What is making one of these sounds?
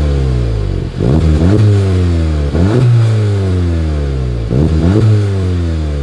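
A car engine revs sharply several times.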